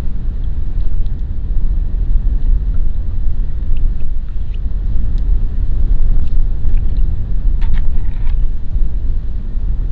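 Water splashes softly as a net is dragged through a pond.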